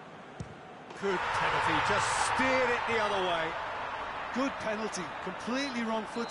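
A crowd bursts into loud cheering.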